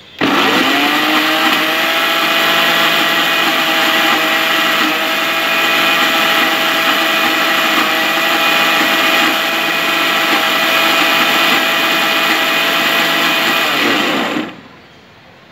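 A countertop blender whirs, blending a thick mash.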